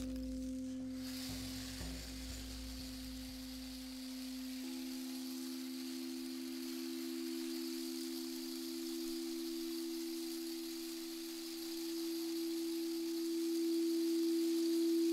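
Singing bowls ring with long, steady humming tones.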